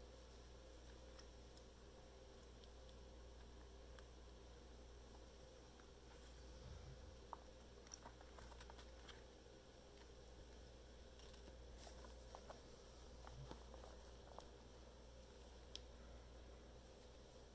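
Rawhide strings rustle and tick as hands braid them.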